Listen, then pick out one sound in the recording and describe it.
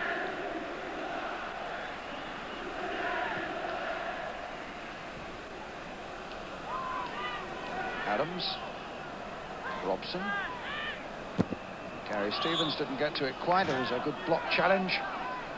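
A large crowd murmurs and cheers in a stadium.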